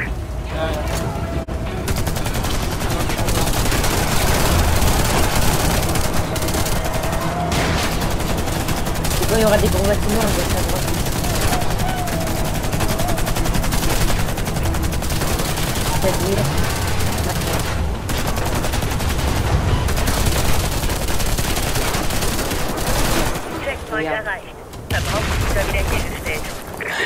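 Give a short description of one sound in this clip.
Gunfire rattles and booms in rapid bursts.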